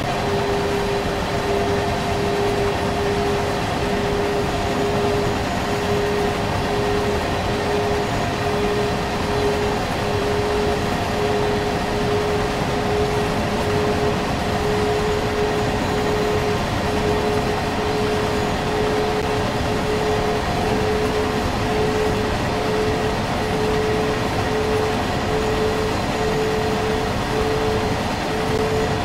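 An electric locomotive hums steadily, its pitch slowly rising as the train speeds up.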